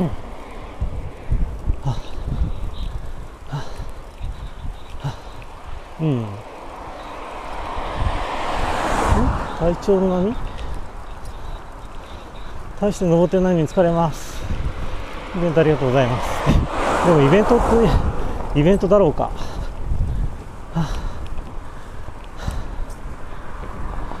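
A car drives along a road with a steady low rumble of wind and tyres.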